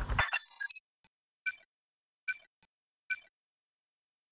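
Short electronic beeps sound as a menu opens.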